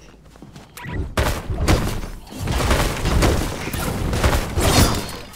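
A pickaxe strikes a wall repeatedly.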